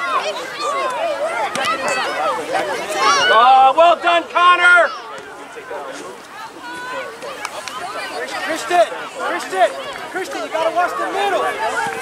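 A crowd of spectators and young players shout and cheer outdoors.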